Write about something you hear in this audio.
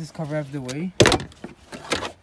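A plastic trim panel snaps loose with a sharp click.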